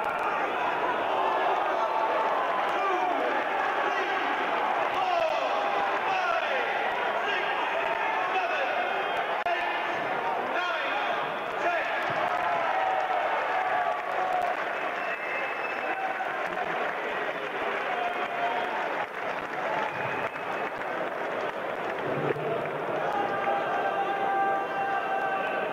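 A large crowd cheers and shouts in an echoing hall.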